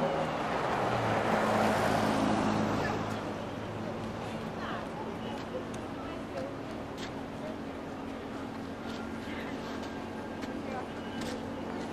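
A crowd of adults murmurs and chats nearby outdoors.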